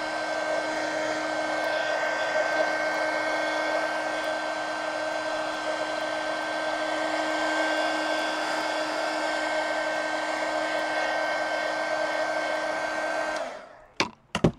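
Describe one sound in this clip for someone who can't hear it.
A hair dryer blows steadily and then switches off.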